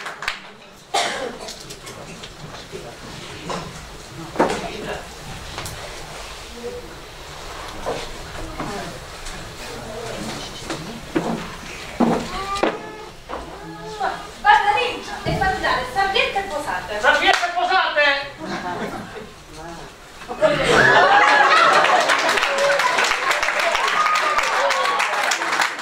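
A woman speaks with animation on a stage, heard from the audience in an echoing hall.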